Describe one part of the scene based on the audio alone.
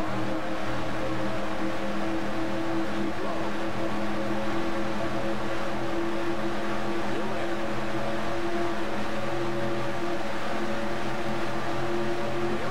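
Racing car engines roar at a steady high pitch.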